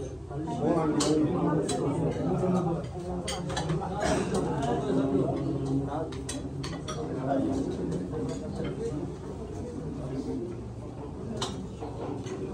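Serving spoons clink against dishes and plates.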